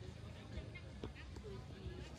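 A football is kicked on a grass field outdoors.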